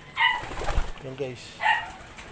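A pigeon coos softly nearby.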